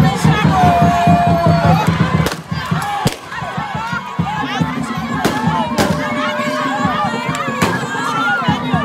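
A crowd sings and chants loudly outdoors.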